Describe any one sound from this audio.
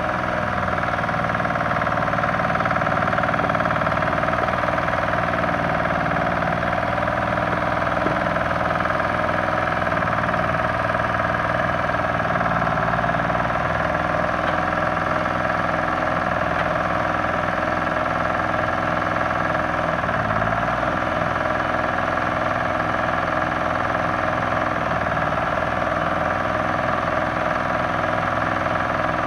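An old diesel engine idles loudly and roughly close by, its speed wavering now and then.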